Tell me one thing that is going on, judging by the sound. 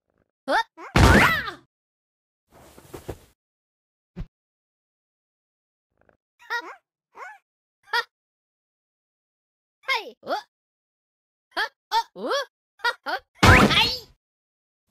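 A heavy thud sounds.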